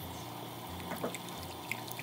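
A whisk stirs a thick mixture in a bowl.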